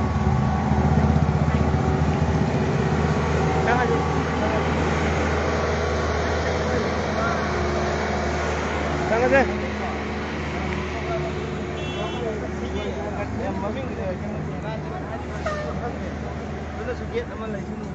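Traffic rumbles steadily on a busy road outdoors.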